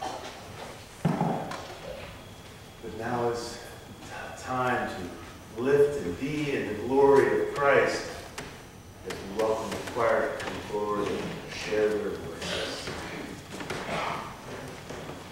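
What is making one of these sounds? An elderly man speaks with animation to a gathering in a room that echoes a little.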